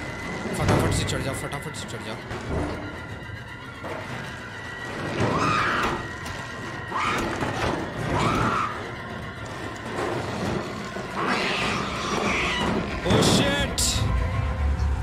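Small footsteps patter on metal.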